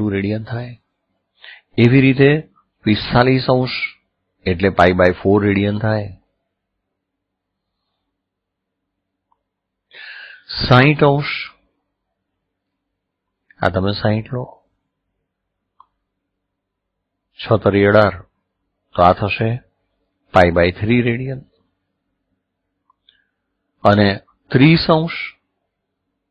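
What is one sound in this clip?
A middle-aged man speaks calmly into a microphone, explaining in pauses.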